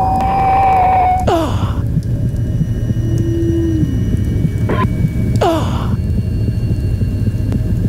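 A monster screeches harshly.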